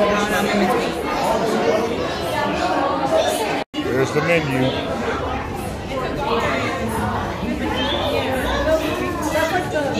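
A crowd of people chatters in an echoing room.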